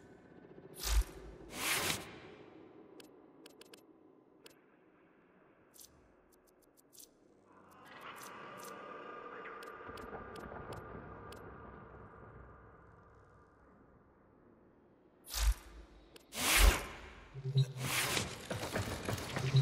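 Loud whooshing bursts of game effects sweep past.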